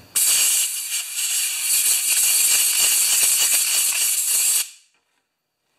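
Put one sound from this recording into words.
Compressed air hisses loudly from an air gun.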